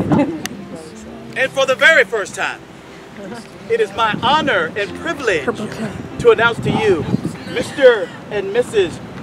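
Men and women chat and laugh nearby.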